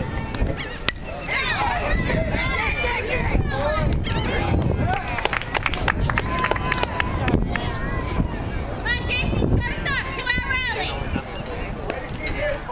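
Children and adults shout and cheer excitedly nearby.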